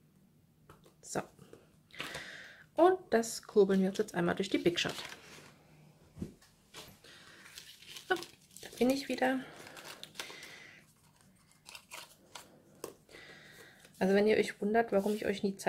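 Paper pieces rustle and tap as they are shuffled on a table.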